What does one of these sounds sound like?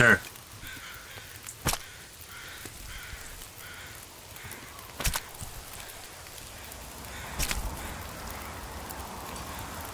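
A knife cuts into a carcass.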